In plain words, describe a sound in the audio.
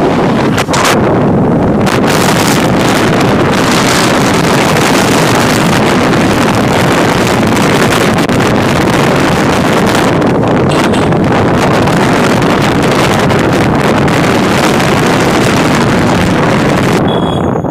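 Strong wind rushes and buffets loudly over a moving motorbike.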